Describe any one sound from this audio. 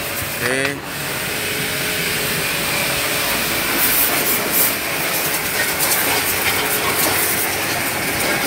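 A pressure washer sprays a loud, steady hissing jet of water against metal.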